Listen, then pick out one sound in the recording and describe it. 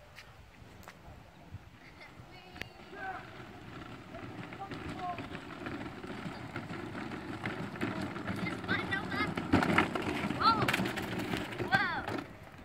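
A toy ride-on car rolls along pavement with a rumble, growing louder as it approaches.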